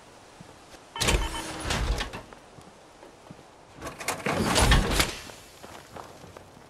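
A heavy metal suit hisses and clanks as it opens.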